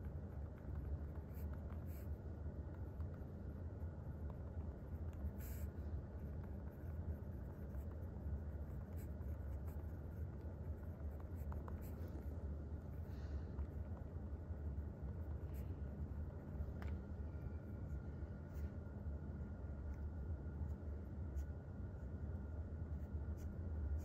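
A pen scratches softly on paper as someone writes by hand.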